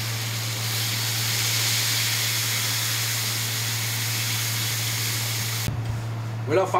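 Food sizzles and hisses loudly in a hot pan.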